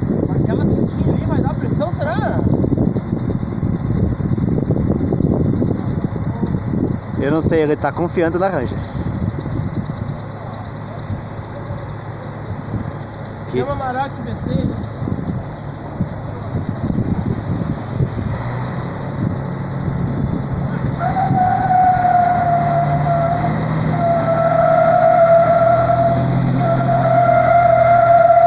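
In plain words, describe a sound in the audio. A heavy truck engine idles with a low rumble.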